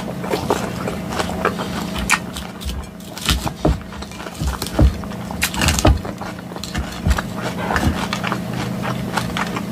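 A fork scrapes and clinks against a glass bowl.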